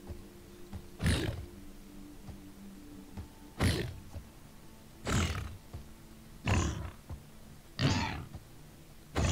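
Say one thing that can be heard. Heavy blows strike a beast in a quick series of thuds.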